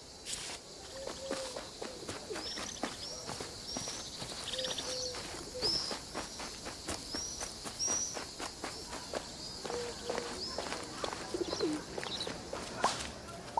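Small footsteps patter over dry grass and paving.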